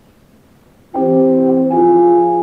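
An organ plays sustained chords.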